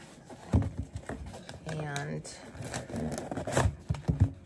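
A cardboard box rustles and scrapes as hands open it.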